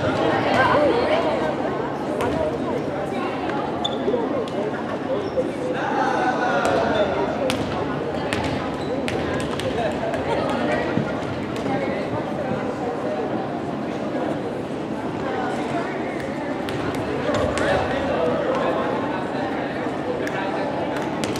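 Young women chatter and call out in a large echoing gym.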